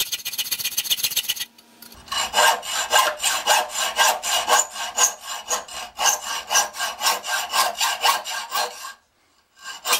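A hacksaw rasps quickly back and forth through metal.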